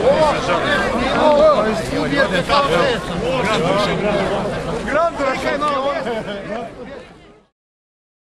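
A crowd of men and women talks and laughs loudly close by.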